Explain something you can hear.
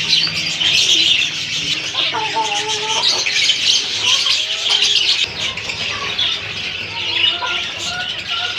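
Many budgerigars chirp and chatter busily.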